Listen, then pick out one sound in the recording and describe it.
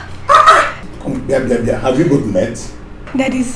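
A man talks loudly, close by.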